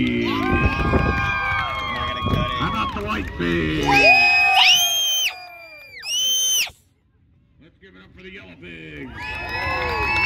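A crowd of people shouts and cheers outdoors at a distance.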